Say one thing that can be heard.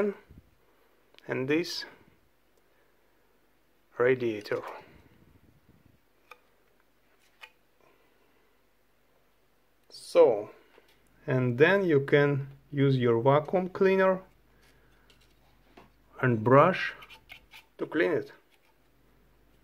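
Light metal parts clink as they are handled.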